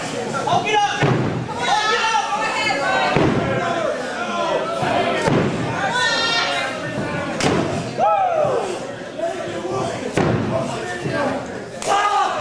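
Bare-handed blows smack against a wrestler's skin.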